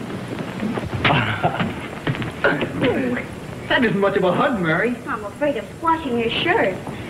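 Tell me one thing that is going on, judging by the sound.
A man speaks softly and affectionately through an old, hissy recording.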